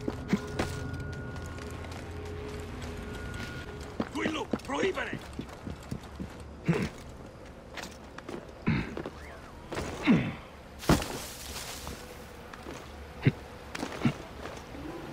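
Hands and feet scrape and thud against stone while climbing.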